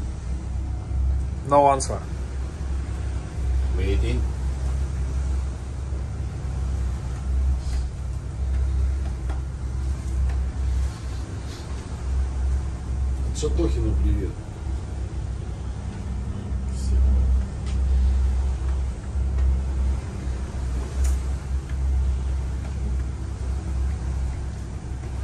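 A boat's engine hums low and steady.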